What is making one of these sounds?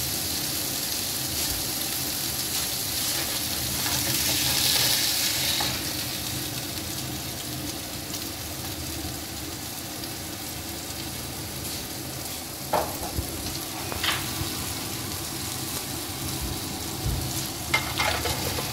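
Steaks sizzle steadily in a hot pan.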